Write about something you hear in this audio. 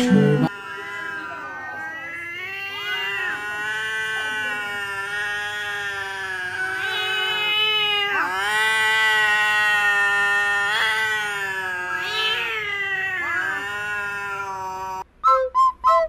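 A cat yowls in a long, wavering growl.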